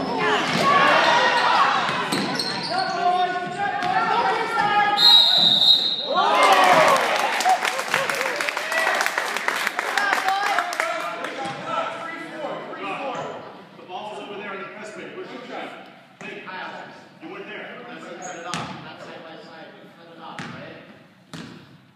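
A crowd of young players and spectators shouts and cheers loudly in a large echoing gym.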